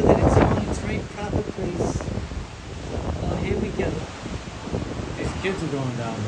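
Waves wash gently onto a shore in the distance.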